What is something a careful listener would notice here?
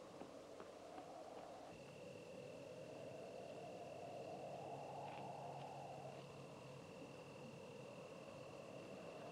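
Footsteps crunch softly on gravel some way off.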